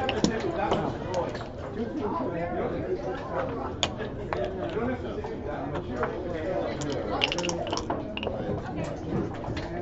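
Dice rattle and tumble across a board.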